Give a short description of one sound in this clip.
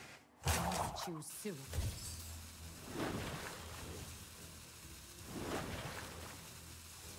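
Video game effects whoosh and chime as cards are played.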